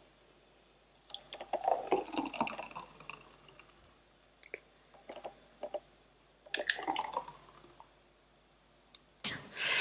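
A thick smoothie glugs as it is poured into a glass.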